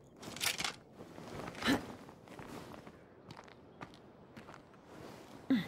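Footsteps shuffle softly across a hard floor.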